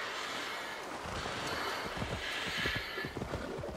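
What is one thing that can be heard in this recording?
Hooves thud on the ground as a horse gallops.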